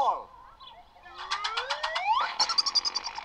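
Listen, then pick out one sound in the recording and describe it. A cartoon dragonfly zooms past with a rising whistle.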